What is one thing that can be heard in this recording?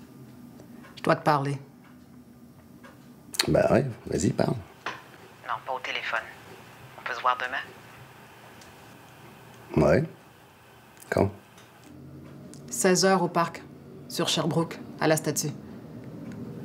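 A woman speaks calmly on a phone, close by.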